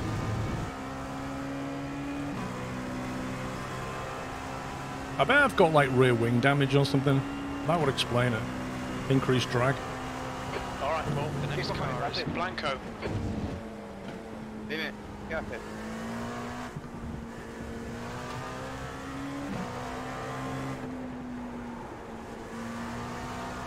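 A racing car engine drones steadily, rising and falling with gear changes.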